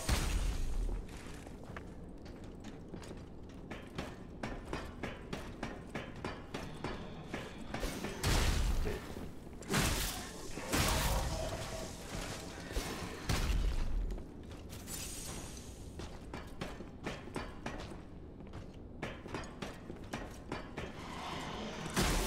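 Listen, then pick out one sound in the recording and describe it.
Footsteps clatter on wooden rungs and boards.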